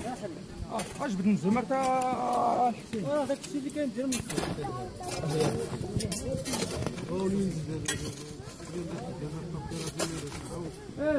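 A hoe chops and scrapes into dry dirt.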